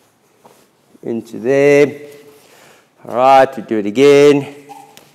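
A man speaks loudly and with emphasis, close by.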